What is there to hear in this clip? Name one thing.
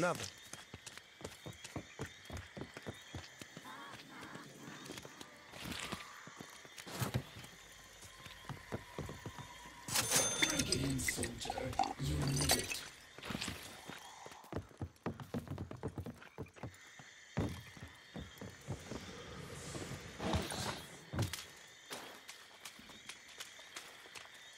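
Footsteps thud quickly on wooden boards and earth.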